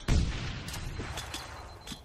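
A rifle fires a few quick shots.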